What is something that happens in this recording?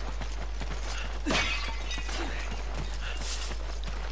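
A clay pot smashes.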